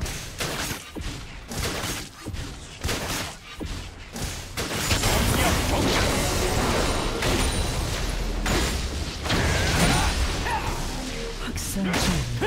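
Spell effects and attacks crackle and blast in a video game fight.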